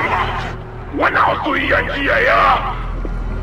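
A man shouts through a megaphone.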